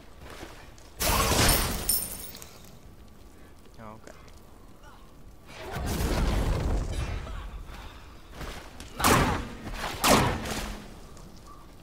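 Magical blasts whoosh and crackle in short bursts.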